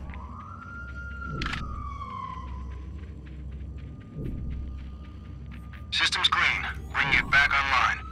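Footsteps thud as a man runs.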